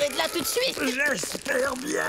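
A dog whimpers and yelps in a cartoonish voice.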